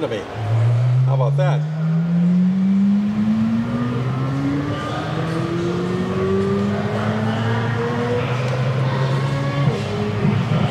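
A flat-plane-crank V8 sports car accelerates hard through the gears, heard through a loudspeaker.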